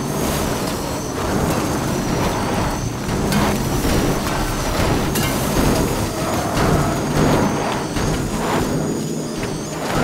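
Wood cracks and crunches as a car smashes through trees.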